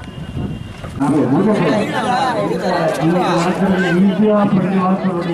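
A group of young children speaks together in chorus, close by.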